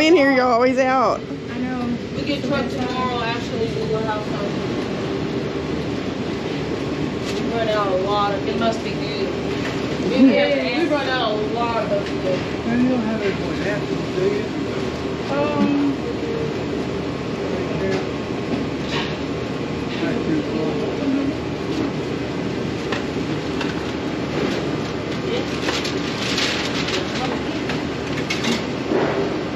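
Kitchen equipment hums steadily in the background.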